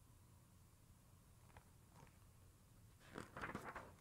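Book pages rustle as a woman turns them.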